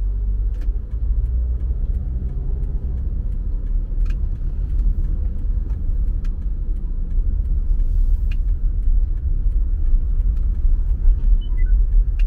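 A car engine hums low and steady from inside a moving car.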